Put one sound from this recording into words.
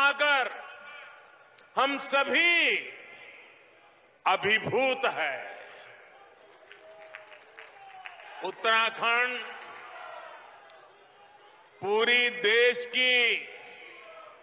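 An elderly man speaks forcefully into a microphone in bursts, with echoing pauses.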